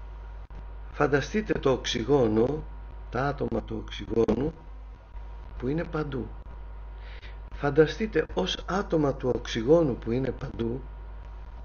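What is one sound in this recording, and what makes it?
A middle-aged man speaks calmly in pauses, heard through a microphone on an online stream.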